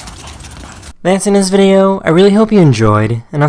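A dog barks loudly.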